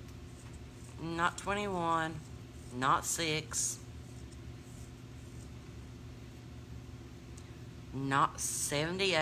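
A middle-aged woman speaks close by, with pauses.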